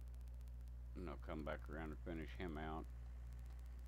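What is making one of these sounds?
A middle-aged man speaks briefly and calmly through a headset microphone.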